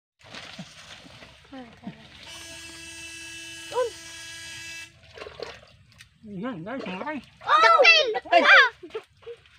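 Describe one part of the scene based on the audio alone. Wet mud squelches as hands dig into it.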